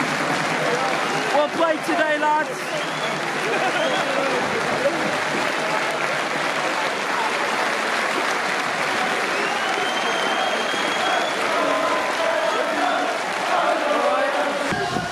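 A large stadium crowd chants and cheers outdoors, heard from a distance.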